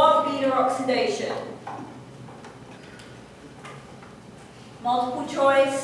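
A woman speaks clearly, explaining in a slightly echoing room.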